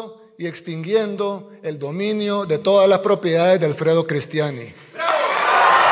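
A man speaks forcefully into a microphone in a large echoing hall.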